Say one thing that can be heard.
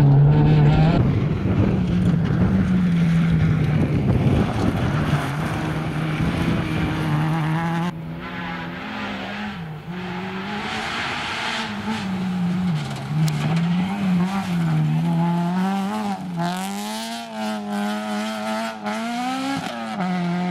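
Gravel and dirt crunch under spinning tyres.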